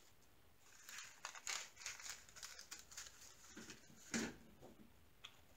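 Small beads rattle inside a plastic container.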